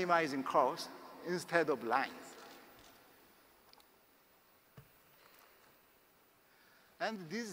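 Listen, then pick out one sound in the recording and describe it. A man lectures through a microphone in a large echoing hall, pausing between phrases.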